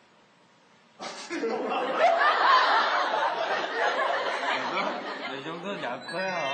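Several men laugh and shout with animation.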